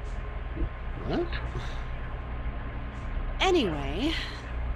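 A young woman speaks hesitantly, in short questioning words.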